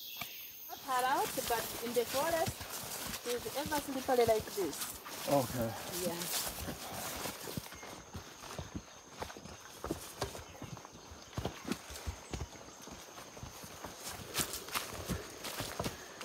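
A walking stick thuds on the ground.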